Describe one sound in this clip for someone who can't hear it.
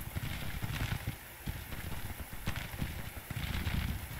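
Muskets fire in scattered volleys in the distance.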